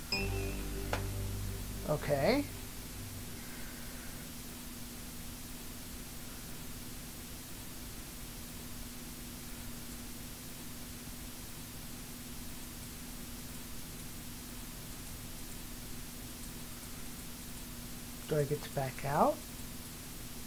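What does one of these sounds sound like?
A television hisses with steady static noise.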